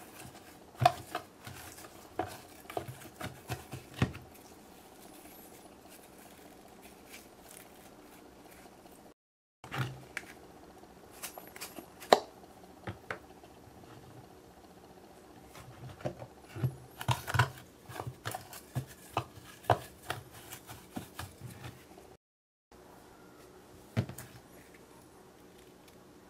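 Wet slime squelches and clicks.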